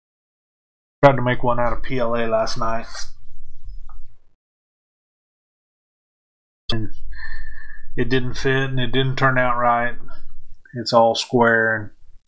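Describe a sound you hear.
A middle-aged man talks calmly into a close microphone, in bursts with pauses.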